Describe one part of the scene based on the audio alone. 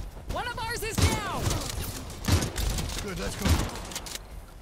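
A shotgun fires in loud, sharp blasts.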